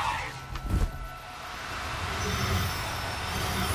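A magic spell bursts with a fizzing crackle.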